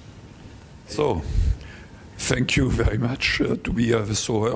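An elderly man speaks calmly into a microphone, heard over loudspeakers in a room.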